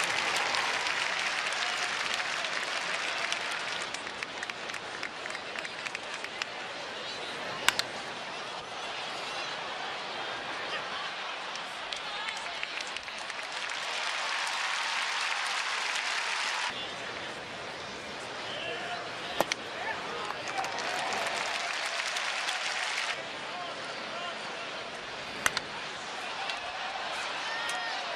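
A large stadium crowd murmurs and cheers outdoors.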